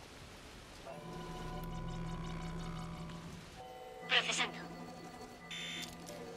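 A scanning machine hums and beeps.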